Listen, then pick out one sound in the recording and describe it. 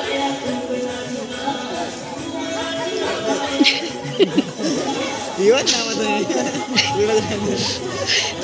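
Young children sing and shout nearby, outdoors.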